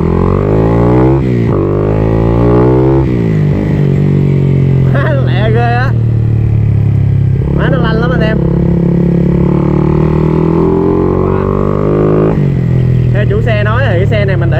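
Wind rushes past as the motorcycle speeds along.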